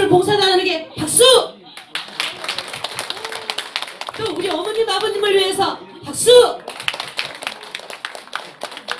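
An audience claps along in rhythm.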